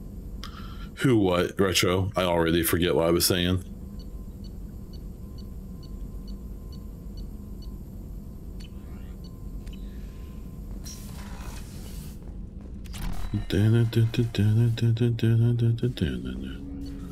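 A man talks into a close microphone in short bursts, with animation.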